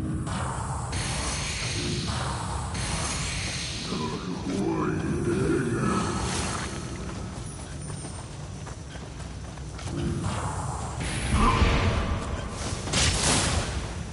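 Magic bursts whoosh and crackle.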